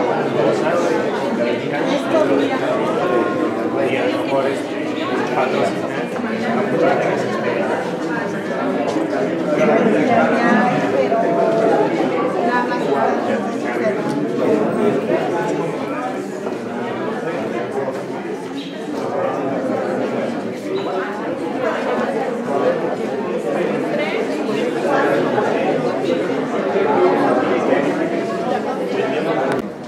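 A crowd of people chatter throughout in an echoing indoor hall.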